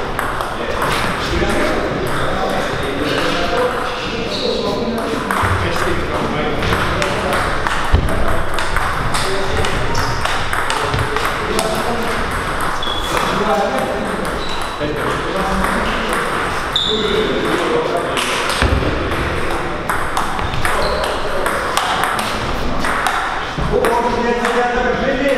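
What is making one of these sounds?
A table tennis ball clicks back and forth between paddles and table.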